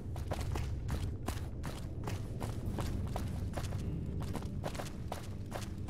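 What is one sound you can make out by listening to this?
Footsteps crunch steadily over rubble.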